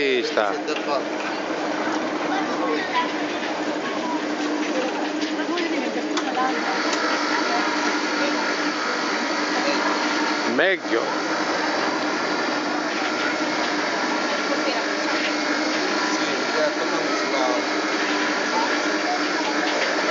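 A cotton candy machine hums and whirs steadily.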